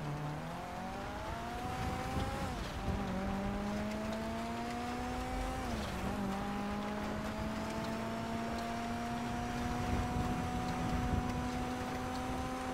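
A car engine revs and drops as gears shift.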